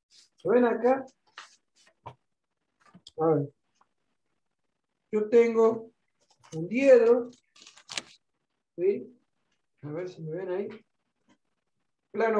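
Pages of a stack of paper flutter as a man flips them.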